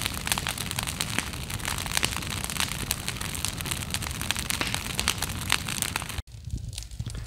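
A brush fire crackles and pops loudly.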